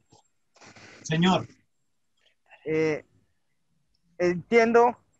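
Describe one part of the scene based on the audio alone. A man speaks in short phrases over an online call.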